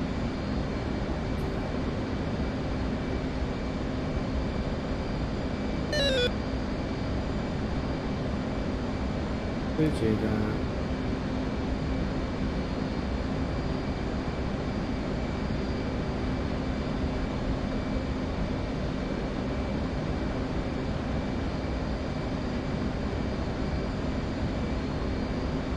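A jet engine hums steadily inside a cockpit.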